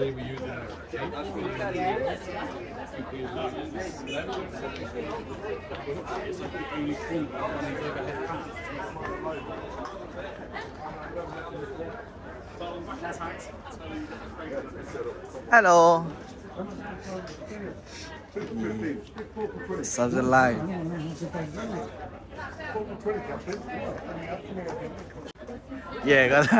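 A crowd of adults chatters all around.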